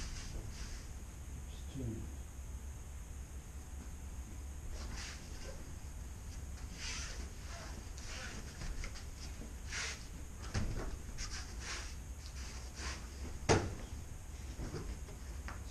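A body falls onto a padded mat with a thud.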